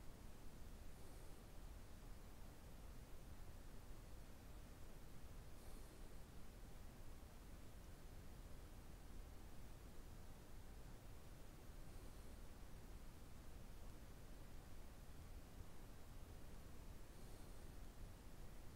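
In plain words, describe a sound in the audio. A man breathes in slowly and softly, close by.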